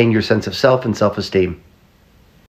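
A middle-aged man speaks emphatically and close to a microphone.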